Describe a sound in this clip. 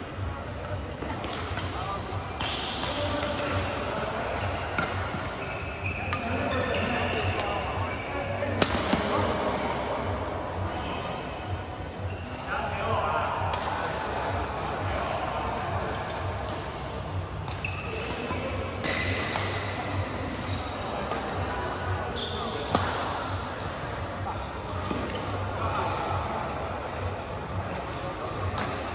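Shoes squeak and patter on a hard court floor.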